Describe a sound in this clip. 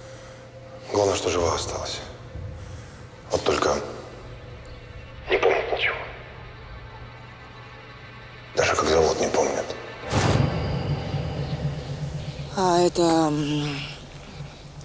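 A man speaks quietly and tensely into a phone.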